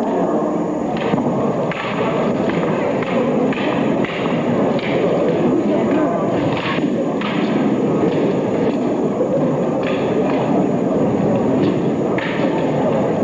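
Wooden staffs and blades clack together sharply.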